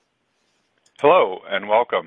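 A woman speaks animatedly over an online call.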